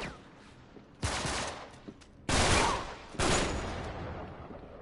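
Gunshots fire in loud bursts with echoing booms.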